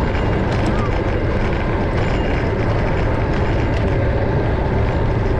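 Wind rumbles steadily against the car.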